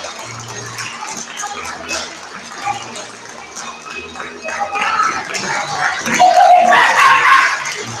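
A group of young performers sings loudly in an echoing hall.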